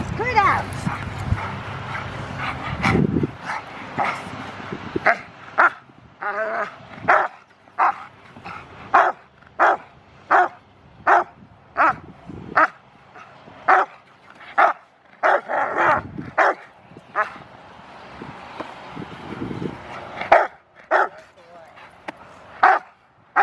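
A large dog barks loudly and repeatedly.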